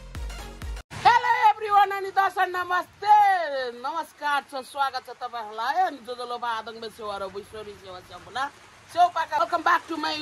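A middle-aged woman talks with animation close to the microphone.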